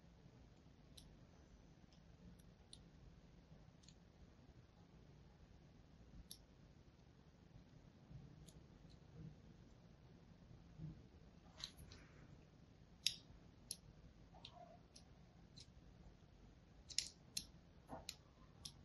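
A fine blade scrapes and crackles through soft soap, up close.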